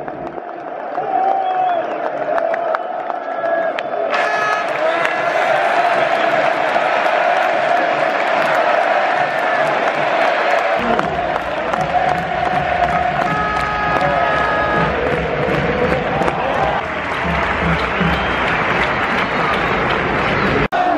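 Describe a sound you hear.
A large crowd sings a chant together.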